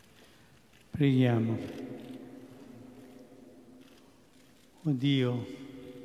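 An elderly man chants into a microphone in a large echoing hall.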